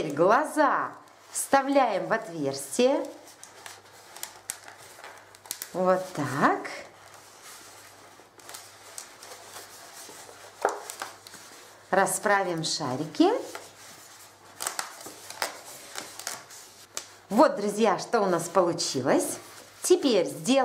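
Rubber balloons squeak loudly as they are twisted and squeezed by hand.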